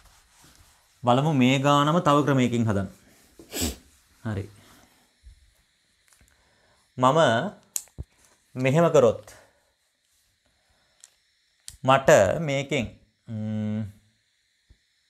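A young man speaks calmly and clearly nearby.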